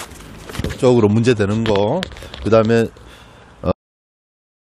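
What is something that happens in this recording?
A man speaks with animation close to a clip-on microphone.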